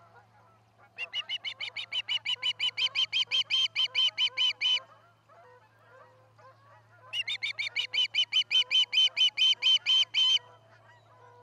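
An osprey calls in a rapid series of shrill, high chirps.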